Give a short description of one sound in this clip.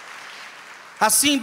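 A man speaks loudly through a microphone in a large hall.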